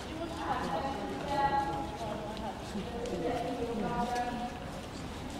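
A young child talks nearby in a large echoing hall.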